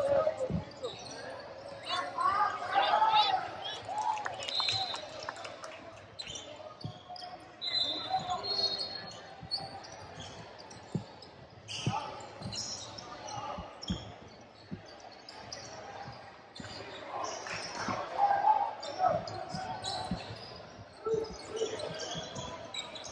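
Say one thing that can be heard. Spectators talk and shout in an echoing gym.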